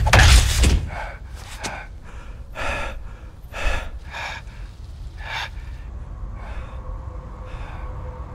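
A man speaks in a low, strained voice.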